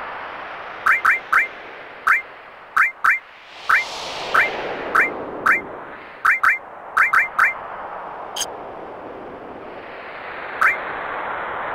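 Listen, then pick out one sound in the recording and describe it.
Short electronic menu blips sound in quick succession.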